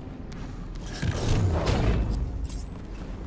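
A deep magical blast whooshes and rumbles.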